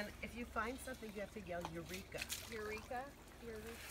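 Water swishes in a metal pan.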